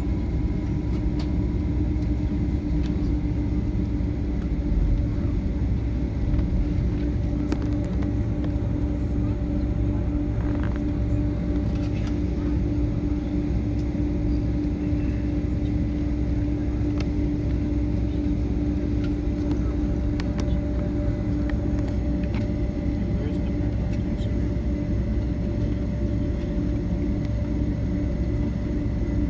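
The plane's wheels rumble and thump over the ground.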